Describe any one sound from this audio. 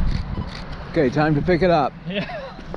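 A man speaks briefly as he jogs up close.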